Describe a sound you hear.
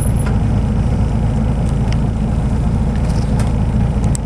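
A large truck rumbles past close by.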